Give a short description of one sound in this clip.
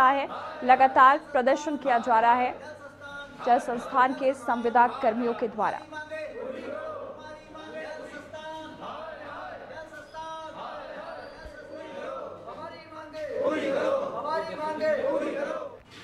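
A crowd of men chants slogans loudly in unison.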